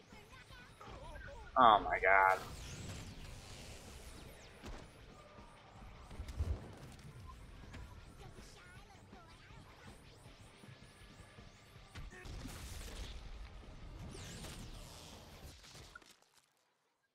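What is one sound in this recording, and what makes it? Gunshots and blows clatter in a steady fight.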